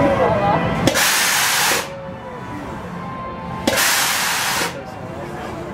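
A drop-tower ride releases loud bursts of hissing air.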